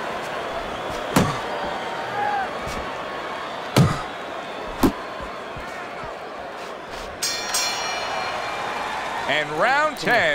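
A large crowd murmurs and cheers steadily in a big echoing arena.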